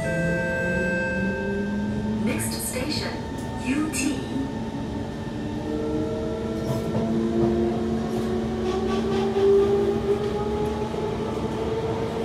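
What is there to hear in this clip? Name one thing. A train hums and rumbles steadily as it moves along the track.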